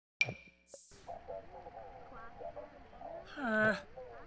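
A man talks into a microphone.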